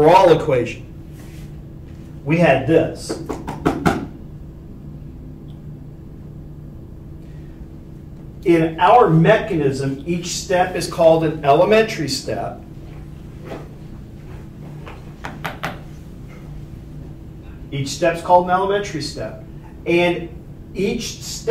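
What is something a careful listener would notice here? A man lectures calmly, with pauses between phrases.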